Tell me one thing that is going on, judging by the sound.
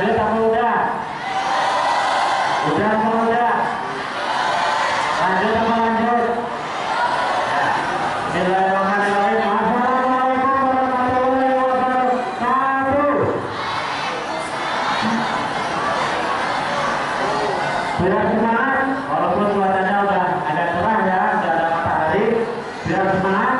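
A large crowd of young people shouts in unison.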